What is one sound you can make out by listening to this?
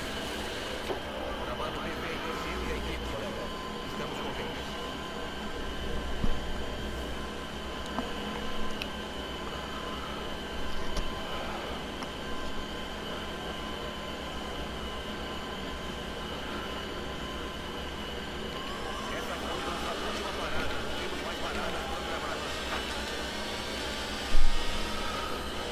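A racing car engine hums steadily at low speed, then revs higher as the car speeds up.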